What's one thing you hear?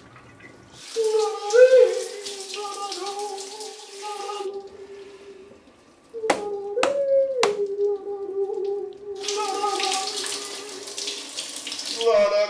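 Shower water sprays and patters.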